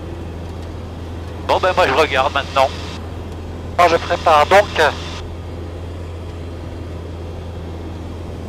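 A light aircraft engine drones steadily.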